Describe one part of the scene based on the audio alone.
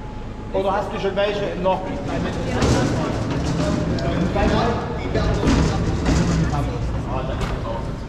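A heavy metal lift door slides and clanks.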